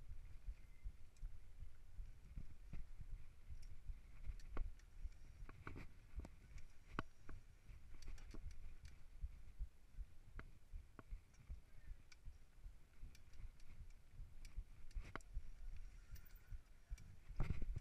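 A bicycle frame and chain rattle and clack over bumps.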